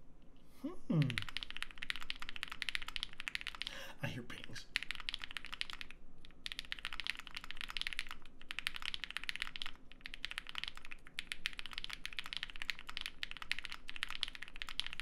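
Keyboard keys clack rapidly as someone types.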